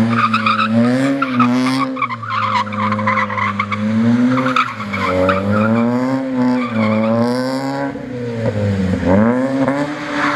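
Tyres screech on the pavement as a car drifts.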